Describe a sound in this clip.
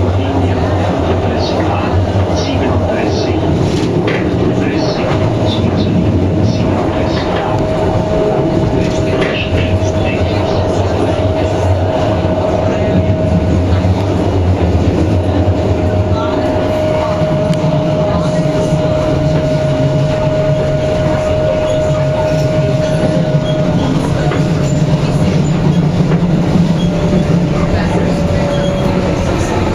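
A train rumbles steadily along the tracks, heard from inside.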